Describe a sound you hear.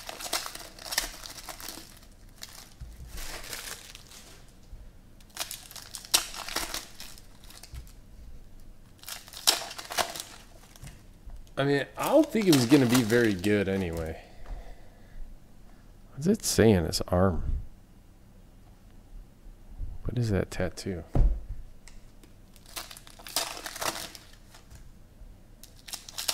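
Foil card wrappers crinkle and tear in bursts.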